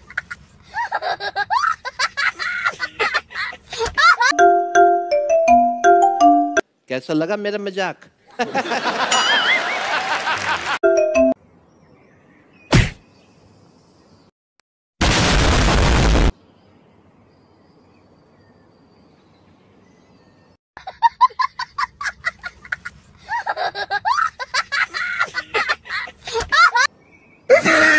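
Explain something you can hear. A young child laughs and talks loudly nearby.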